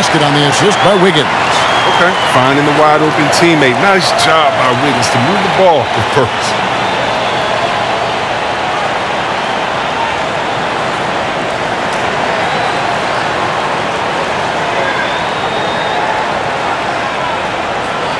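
A large crowd roars steadily in an echoing arena.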